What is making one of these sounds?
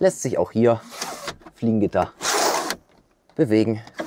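A roof blind slides open with a rasping swish.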